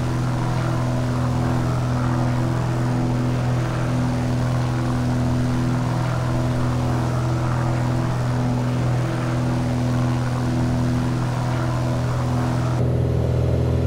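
Wind rushes past a small plane in flight.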